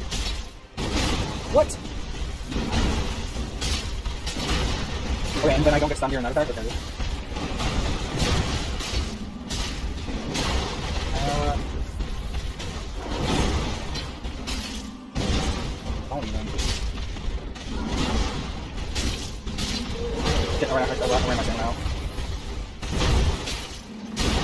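Heavy weapons clash and thud in a fight.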